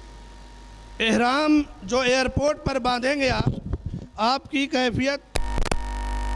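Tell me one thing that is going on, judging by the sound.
A man chants melodiously into a microphone over a loudspeaker.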